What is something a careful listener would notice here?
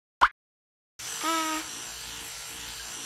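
A toothbrush scrubs teeth.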